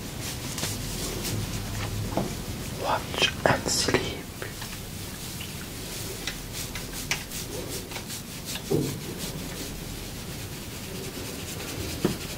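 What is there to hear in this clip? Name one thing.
Fingers rustle and crackle through curly hair close up.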